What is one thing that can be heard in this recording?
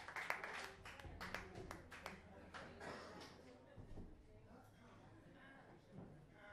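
A live band plays with electric guitar.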